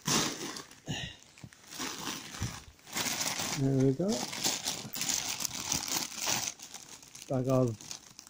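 A crisp packet crinkles as a hand presses on it.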